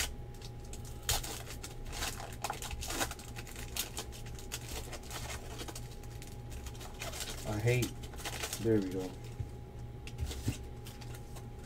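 Plastic wrappers crinkle and rustle as hands tear open card packs.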